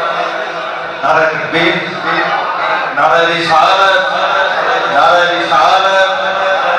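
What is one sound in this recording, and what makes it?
A young man chants loudly through a microphone and loudspeakers.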